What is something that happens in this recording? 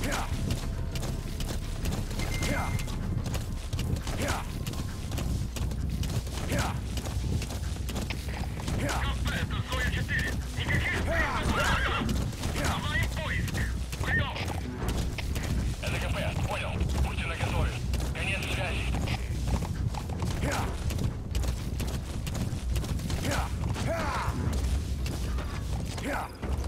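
A horse gallops steadily over rough ground, hooves thudding.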